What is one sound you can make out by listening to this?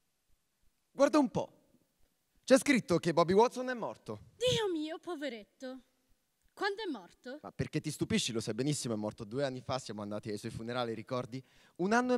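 A woman speaks with feeling through a microphone in a large echoing hall.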